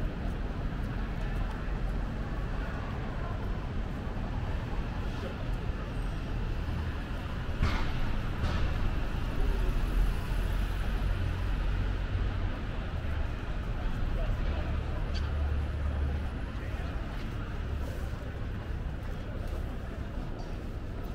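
A steady city hum and low rumble fills the air outdoors.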